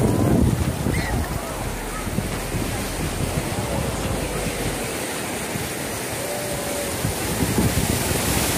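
Shallow waves wash and swirl around close by.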